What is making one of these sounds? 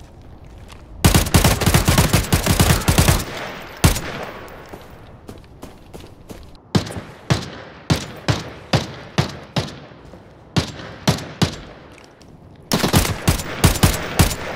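A rifle fires in rapid, loud bursts of shots.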